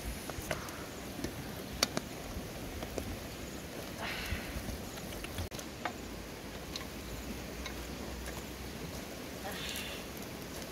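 A wooden spoon knocks and scrapes against a metal pot.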